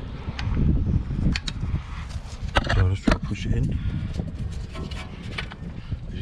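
A metal part knocks and clicks against a brake caliper.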